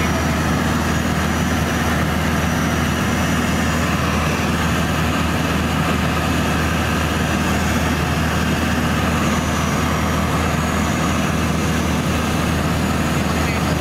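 Wind rushes past the small plane.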